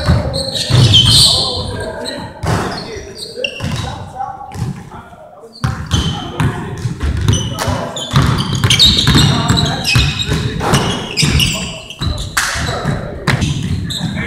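Young men call out to each other in a large echoing gym.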